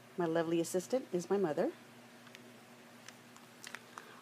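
A paper card rustles as it is folded open.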